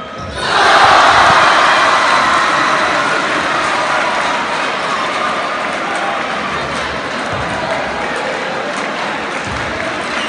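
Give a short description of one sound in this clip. A crowd cheers loudly in a large echoing hall, then slowly quietens.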